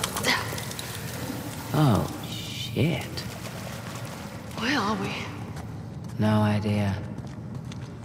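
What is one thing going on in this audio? A second young woman answers calmly.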